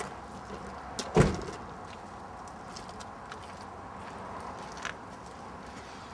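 Footsteps tread on pavement close by.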